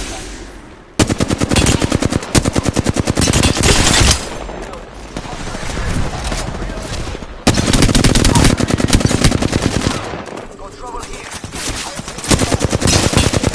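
A rapid-fire gun shoots in fast, loud bursts.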